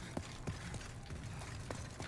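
A small fire crackles.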